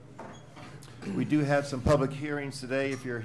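A man speaks calmly into a microphone, heard over a loudspeaker in a large room.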